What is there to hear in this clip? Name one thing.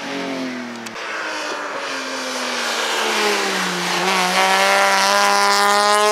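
A second race car engine approaches, growing louder and shifting gears.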